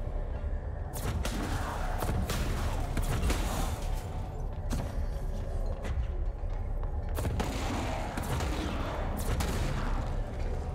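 Objects smash and crash as they are flung about.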